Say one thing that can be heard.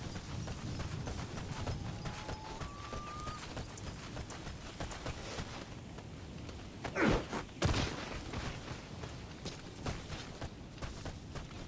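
Footsteps crunch on gravel and dry ground.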